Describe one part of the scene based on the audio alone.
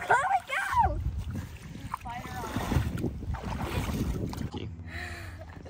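Shallow water splashes and laps around a board.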